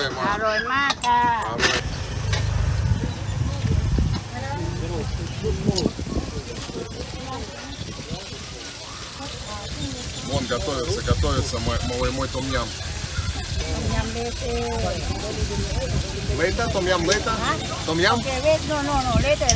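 A woman talks nearby in a conversational tone.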